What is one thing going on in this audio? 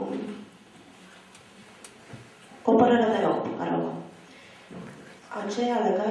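A woman speaks calmly into a microphone, heard through loudspeakers in a room, with pauses.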